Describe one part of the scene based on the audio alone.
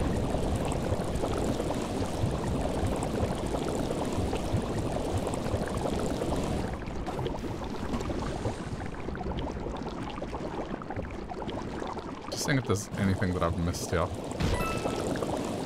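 A steady rushing, bubbling noise churns through thick liquid.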